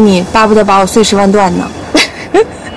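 A woman speaks with animation, close by.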